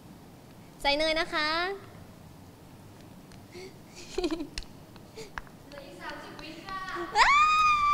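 A young woman speaks in a high, animated voice into a microphone close by.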